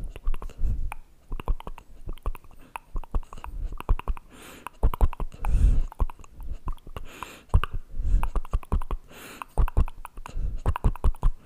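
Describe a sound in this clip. Fingers rub and tap close to a microphone.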